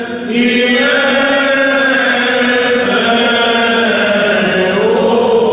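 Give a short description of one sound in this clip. Men chant together in a slow, sustained liturgical melody, echoing in a large resonant hall.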